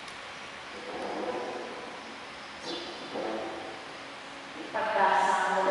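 A woman reads out through a microphone in an echoing hall.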